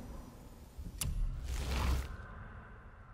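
A game menu makes a sharp click and a whooshing chime as it opens.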